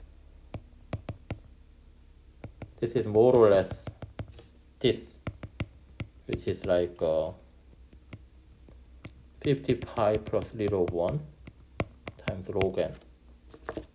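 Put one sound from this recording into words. A stylus taps and scrapes lightly on a tablet.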